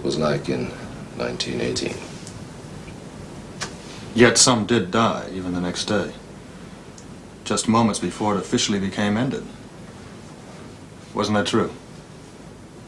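A middle-aged man speaks quietly and slowly, with long pauses, close by.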